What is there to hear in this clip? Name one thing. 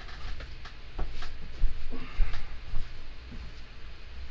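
Footsteps thud across a floor.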